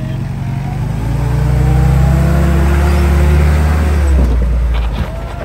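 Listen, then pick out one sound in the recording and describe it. An engine revs hard as a vehicle climbs over rock.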